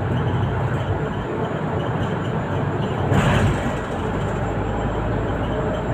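A bus engine hums steadily from inside the cabin as the bus drives along.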